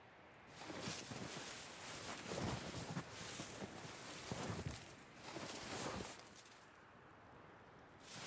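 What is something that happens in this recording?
Wind blows steadily in a snowstorm.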